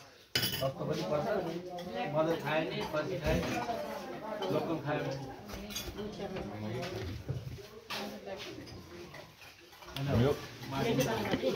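Dishes and cutlery clink on plates.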